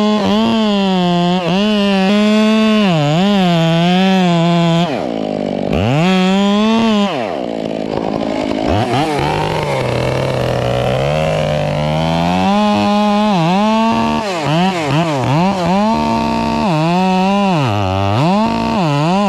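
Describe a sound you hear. A chainsaw engine roars loudly, its pitch rising and falling as it cuts into a tree trunk.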